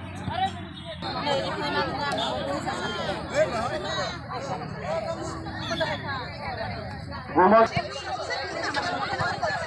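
A crowd of women chatters and calls out outdoors.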